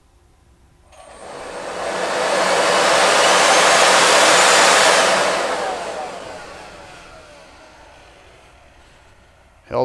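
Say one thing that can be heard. A supercharger spins up with a rising whine, then winds down.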